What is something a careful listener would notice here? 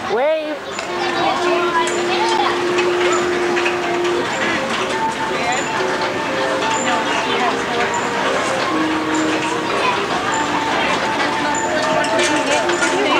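Carousel organ music plays loudly nearby.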